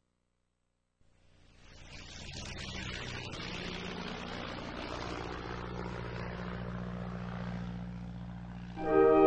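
A small propeller plane drones steadily as it flies past.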